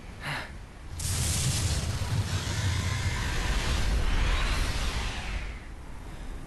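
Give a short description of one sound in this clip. A motorcycle engine roars past.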